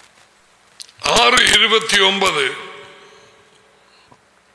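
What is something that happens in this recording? A man sings out a short, loud note into a microphone, and it echoes as it fades.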